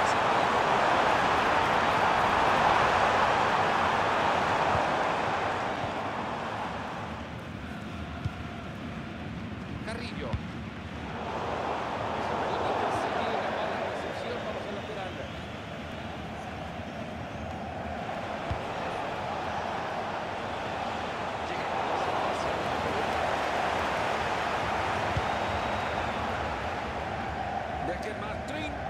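A stadium crowd roars and cheers in a swelling wave.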